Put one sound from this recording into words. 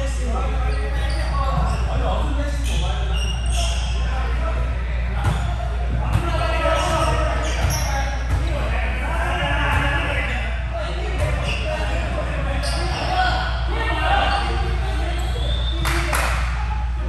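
Several young men talk and call out to each other in a large echoing gym.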